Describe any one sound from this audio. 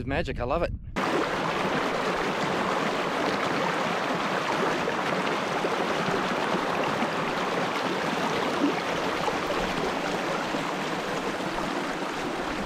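Water splashes and gurgles loudly over rocks right nearby.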